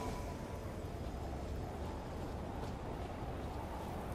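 Footsteps run across stone.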